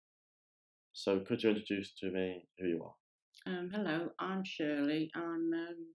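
An elderly woman speaks calmly into a close microphone.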